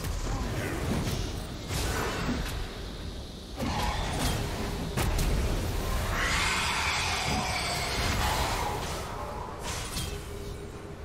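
Magic spells blast, crackle and whoosh in a fierce fight.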